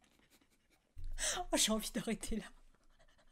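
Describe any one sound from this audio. A young woman laughs close to a microphone.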